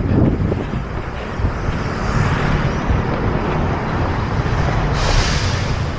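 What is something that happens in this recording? A car drives past on a paved street.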